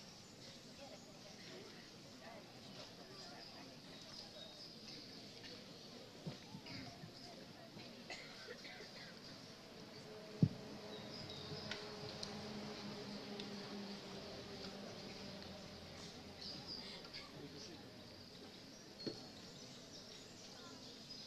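A crowd of young people murmurs and chatters quietly outdoors.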